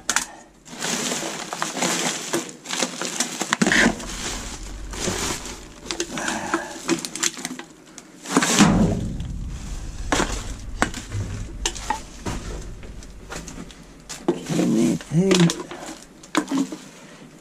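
Plastic bags and wrappers rustle and crinkle as a gloved hand digs through rubbish.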